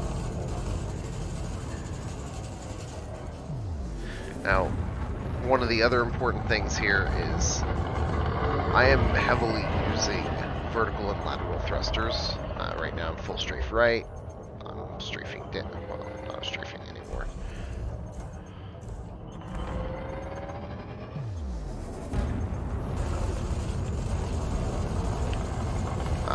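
A spacecraft engine hums low and steadily.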